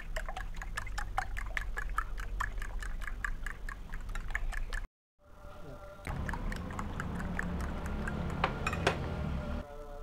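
A fork whisks eggs quickly in a bowl, clicking against its sides.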